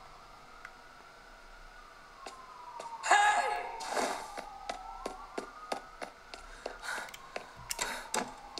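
Video game sound effects play through small speakers.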